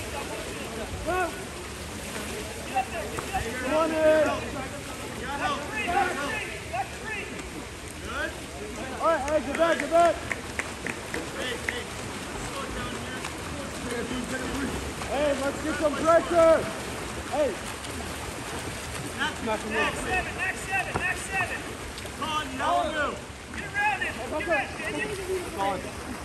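Spectators shout and cheer from the poolside.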